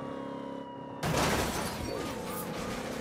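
A car crashes into another car with a loud metallic bang.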